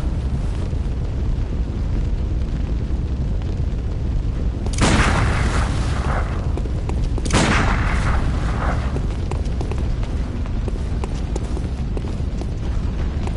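Footsteps run over stone cobbles.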